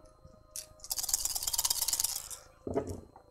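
Dice rattle in a hand and clatter onto a tray.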